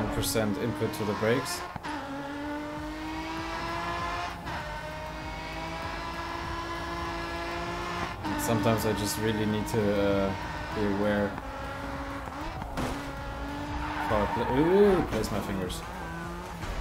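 A racing car engine roars steadily and shifts up through the gears.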